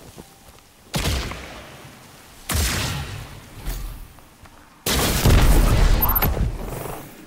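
Heavy gunfire booms in loud bursts.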